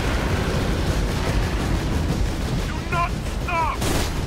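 Heavy explosions boom and rumble.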